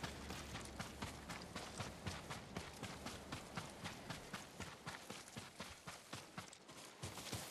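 Footsteps run quickly through tall grass.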